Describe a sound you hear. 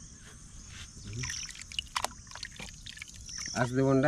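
Water sloshes as a hand moves meat in a bowl.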